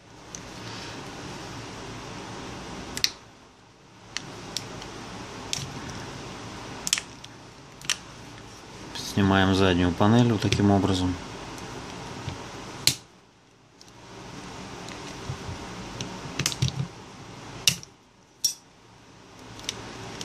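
Small plastic parts click and tap as a phone is taken apart by hand.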